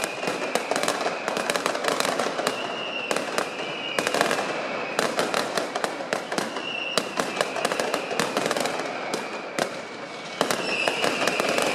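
Fireworks crackle and bang rapidly overhead.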